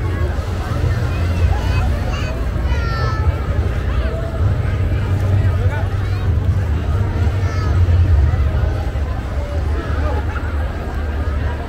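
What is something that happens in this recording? A large outdoor crowd chatters and calls out all around.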